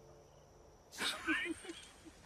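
A young woman laughs softly nearby.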